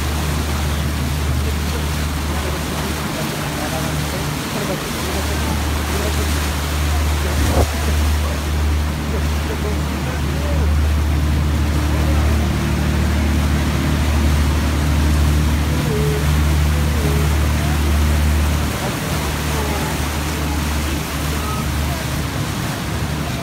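Water churns and splashes in the boat's wake.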